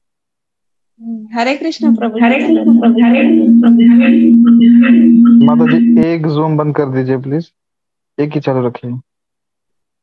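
A man chants in a steady, drawn-out voice, heard through an online call.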